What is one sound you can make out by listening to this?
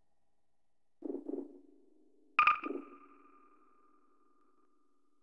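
Menu clicks sound with short electronic tones.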